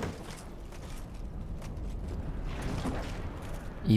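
A heavy wooden chest creaks open.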